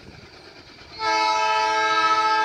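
A diesel locomotive sounds its horn in the distance.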